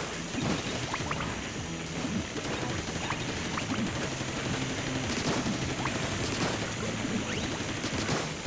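Small chimes ring as items are collected.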